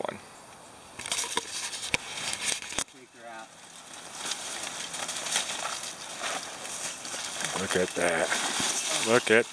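Branches and twigs rustle and crack as someone climbs through brush.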